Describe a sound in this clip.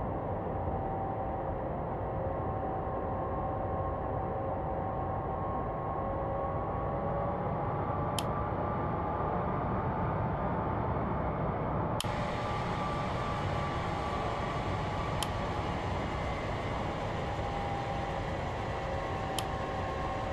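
Jet engines roar steadily with a high whine.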